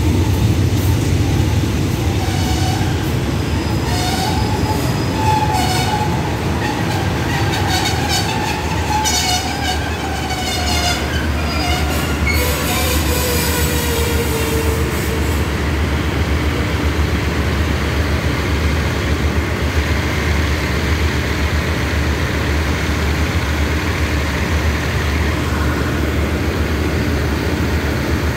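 A train rumbles steadily past at close range.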